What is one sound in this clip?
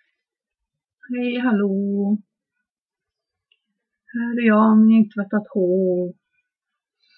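A woman speaks close to a microphone in short, drawn-out phrases.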